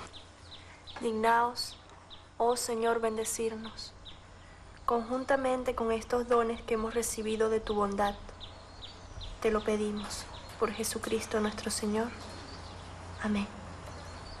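A young woman speaks softly and earnestly, close by.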